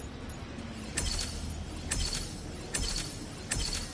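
Electronic menu blips chime in quick succession.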